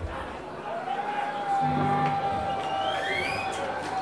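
A man shouts into a microphone over loudspeakers.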